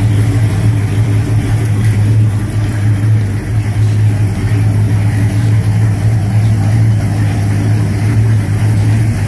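A car engine idles with a steady, deep rumble close by.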